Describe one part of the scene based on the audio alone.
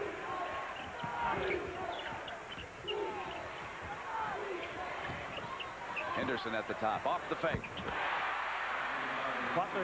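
A large crowd murmurs and shouts in a big echoing arena.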